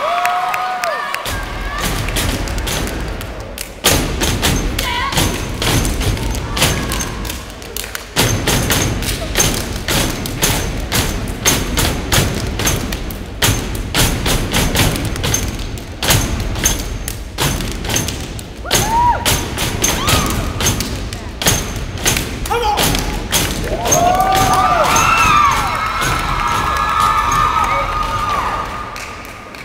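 Dancers stomp their feet on a raised hollow stage.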